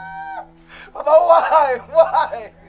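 A woman wails loudly in grief.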